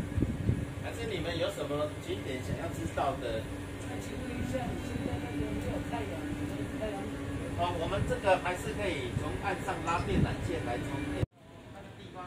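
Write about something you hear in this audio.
A middle-aged woman talks close to the microphone.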